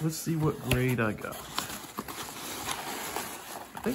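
Foam packing pieces rustle and squeak as hands dig through them.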